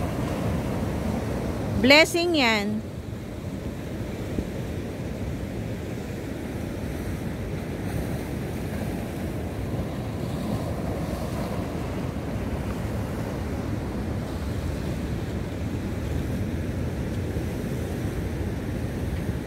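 Sea waves crash and wash over rocks close by.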